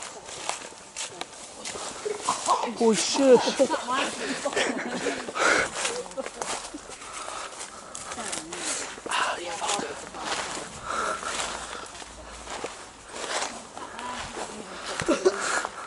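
Footsteps crunch through dry leaves and undergrowth.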